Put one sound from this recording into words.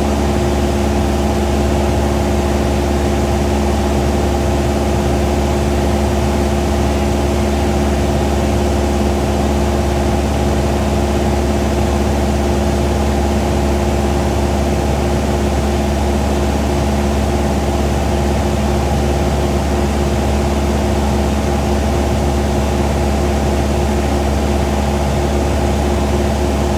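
A small propeller plane's engine drones steadily and loudly from inside the cabin.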